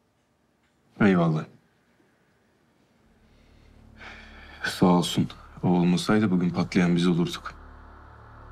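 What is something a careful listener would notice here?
A second man answers in a low, calm voice, close by.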